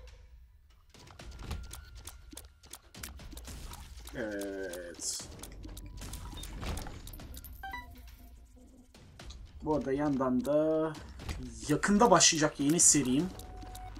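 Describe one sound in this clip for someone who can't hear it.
Quick pops and wet splats of a video game fight go off in rapid bursts.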